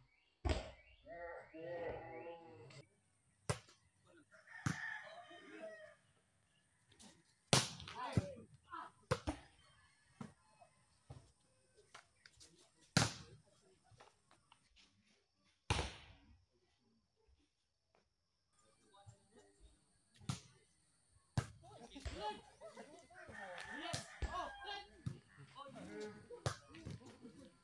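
A ball is struck with sharp slaps outdoors.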